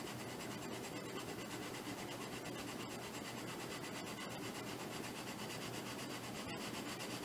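Sandpaper rasps steadily against a small block of wood.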